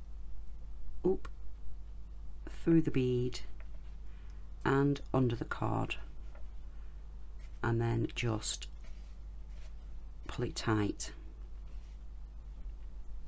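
A cord rustles and slides softly across paper.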